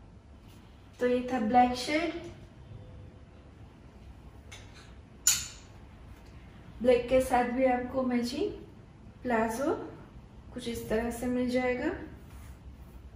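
A woman speaks calmly and close by, in short phrases.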